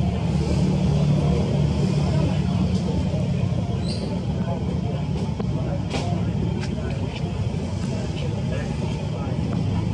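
A baby monkey whimpers and cries close by.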